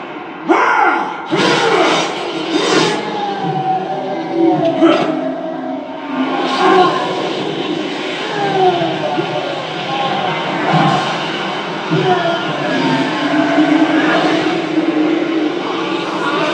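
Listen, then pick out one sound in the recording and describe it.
Blades swish and clang.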